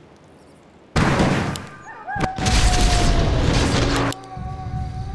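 Magic blasts and crackles burst loudly during a fight.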